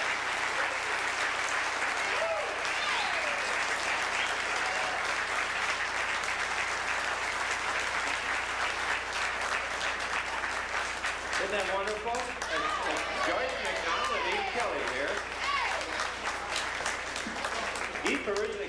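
A jazz band plays loudly in a room.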